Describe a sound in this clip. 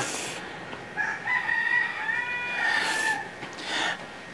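A baby cries softly.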